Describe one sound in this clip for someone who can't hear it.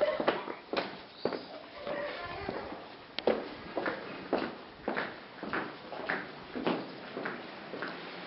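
Footsteps tread on cobblestones in an echoing passage.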